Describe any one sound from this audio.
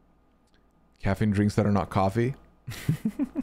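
A man speaks up close into a microphone.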